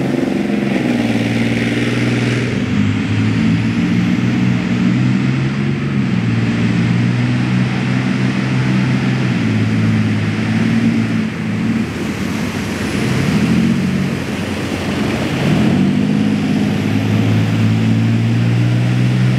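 A heavy tank engine roars loudly close by, rising and falling in pitch.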